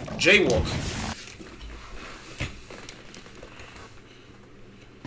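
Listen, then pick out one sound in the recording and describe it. A young man speaks briefly, close to a microphone.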